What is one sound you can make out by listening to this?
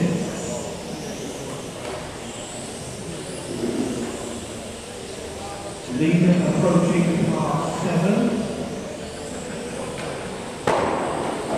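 Electric 1/12 scale RC cars whine around a track in an echoing hall.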